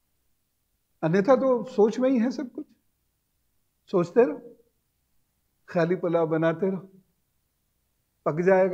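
A middle-aged man speaks with animation into a clip-on microphone, with pauses between phrases.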